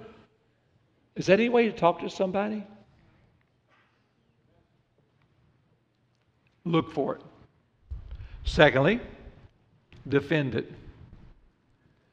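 An older man speaks calmly and with emphasis through a microphone, pausing between phrases.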